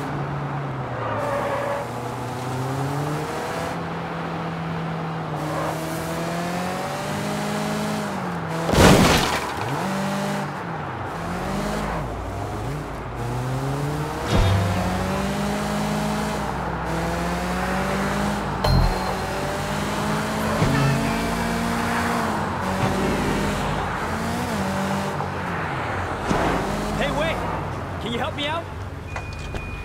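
A car engine revs up and down as gears shift.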